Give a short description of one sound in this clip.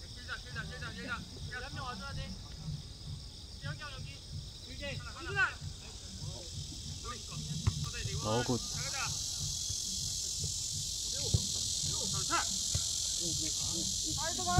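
Children shout and call out across an open field in the distance.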